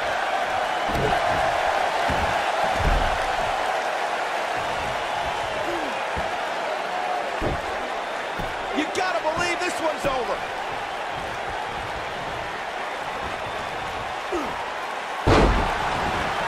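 Heavy bodies slam onto a wrestling ring mat with deep thuds.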